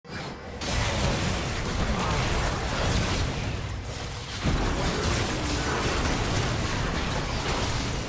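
Magic spells burst and weapons clash in a video game battle.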